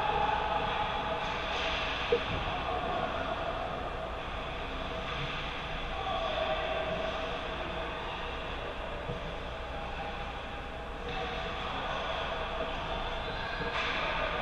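Skates scrape and glide across ice in a large echoing arena.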